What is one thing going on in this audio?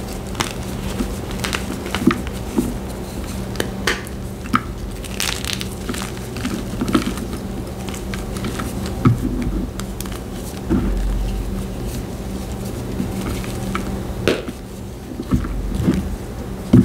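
Powdery chalk crumbles and crunches under fingers, close up.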